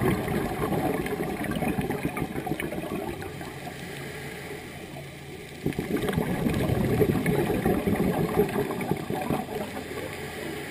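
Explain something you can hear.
Air bubbles gurgle and rumble underwater in bursts.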